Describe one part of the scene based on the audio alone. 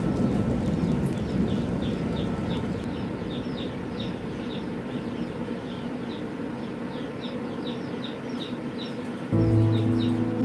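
Small birds chirp and peep rapidly from close by.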